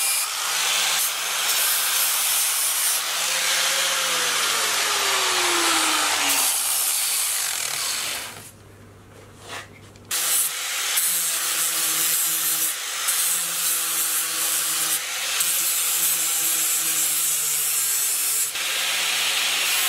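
An angle grinder whines loudly, grinding metal with a harsh hiss.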